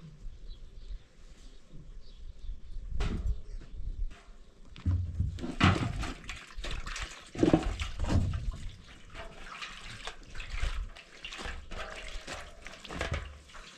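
Water splashes as clothes are scrubbed in a basin.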